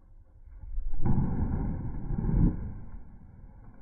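A heavy log crashes into water with a huge splash.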